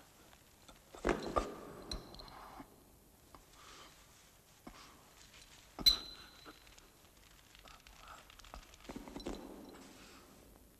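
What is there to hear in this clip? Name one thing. A man scrambles and scrapes against rock while climbing.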